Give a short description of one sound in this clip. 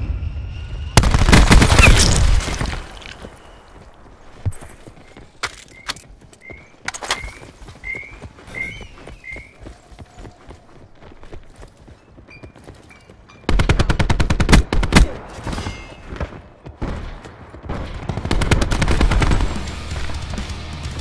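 Rapid gunfire rattles loudly in short bursts.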